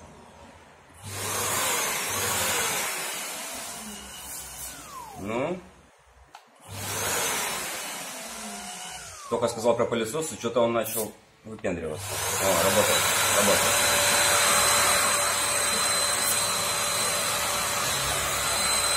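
A power sander whirs and buzzes.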